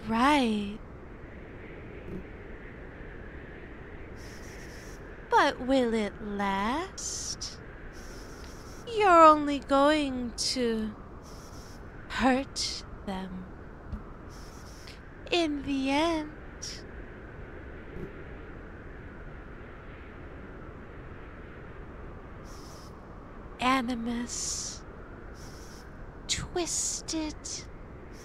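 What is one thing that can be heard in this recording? A woman speaks quietly, close to a microphone.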